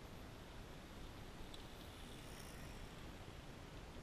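A bicycle rolls over gravel nearby.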